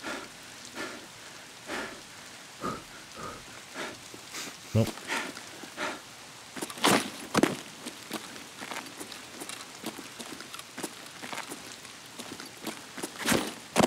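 Footsteps crunch on rocky ground at a steady pace.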